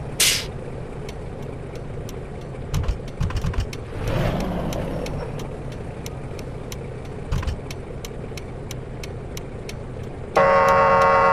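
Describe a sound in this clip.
A turn signal ticks rapidly.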